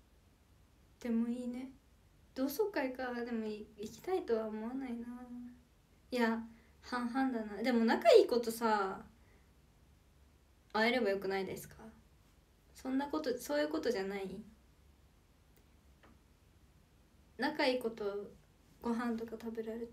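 A young woman talks calmly and close to the microphone, in short bursts with pauses.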